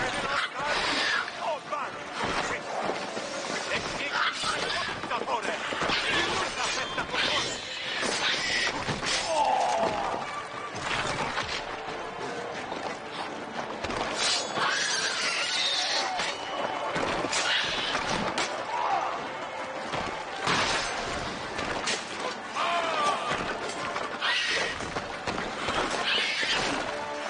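Swords clash and strike in quick blows.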